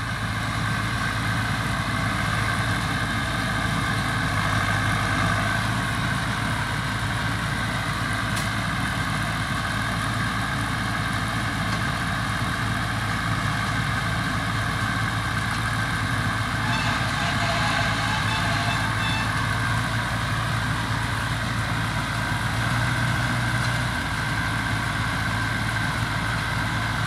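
A tractor engine runs steadily and loudly nearby.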